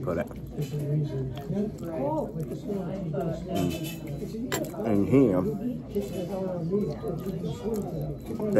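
A man talks calmly and close up.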